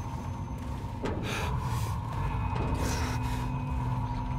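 A door handle rattles as someone tries a locked door.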